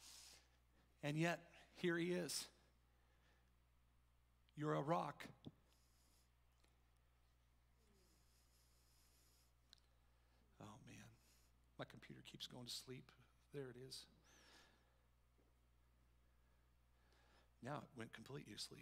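A middle-aged man speaks with animation into a microphone, in a large room with some echo.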